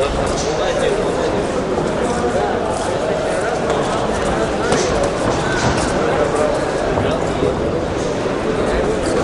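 A crowd in a large echoing hall murmurs and shouts throughout.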